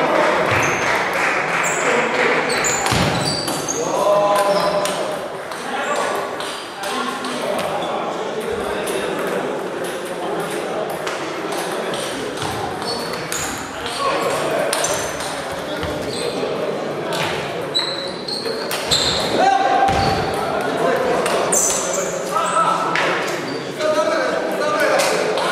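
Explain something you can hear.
Men's voices chatter and call out in a large echoing hall.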